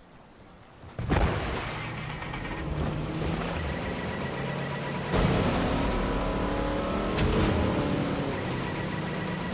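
A motorboat engine roars as the boat speeds along.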